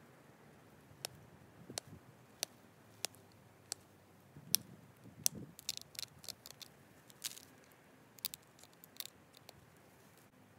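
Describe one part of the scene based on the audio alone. A stone tool chips and clicks sharply against stone in short, irregular taps.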